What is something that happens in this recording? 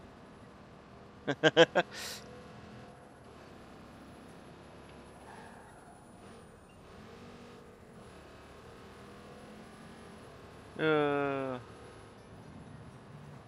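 A car engine hums as a car drives along a street.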